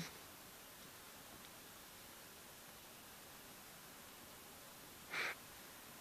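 A cat paws at a towel on a hard floor, rustling it.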